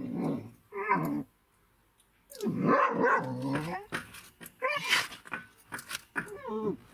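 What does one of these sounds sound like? A dog's paws crunch through packed snow.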